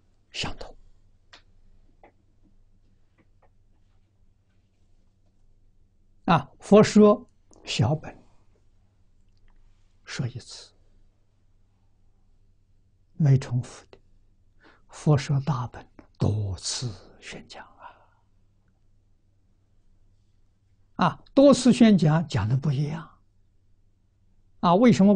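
An elderly man speaks calmly into a close microphone, pausing between phrases.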